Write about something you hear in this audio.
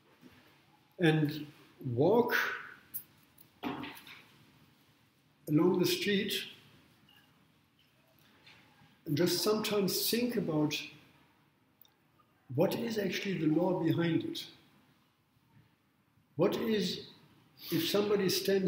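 An elderly man speaks calmly in short phrases with pauses, close by.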